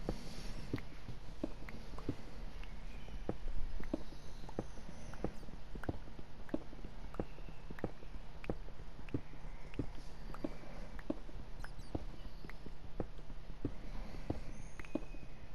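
A pickaxe repeatedly chips at stone blocks with dull, regular knocks.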